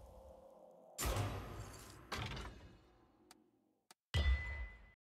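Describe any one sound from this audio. A deep booming whoosh sounds several times.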